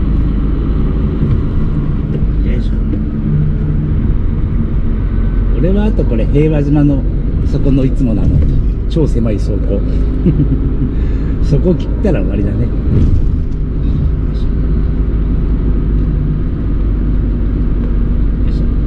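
A truck engine hums low and steady from inside the cab.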